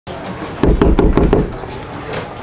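A hand knocks rapidly on a wooden door.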